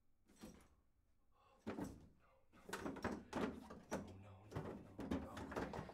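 Hands pat and rub against a plastic dispenser.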